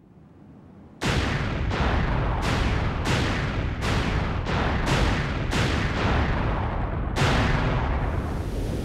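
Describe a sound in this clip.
Explosions boom one after another with a rumbling roar.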